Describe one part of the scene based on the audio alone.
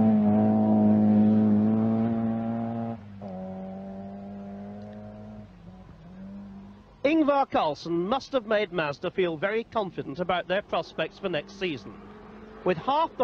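A rally car engine roars at high revs, then fades with distance.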